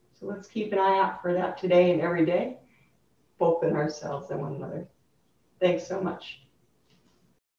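A woman speaks calmly and warmly, close by.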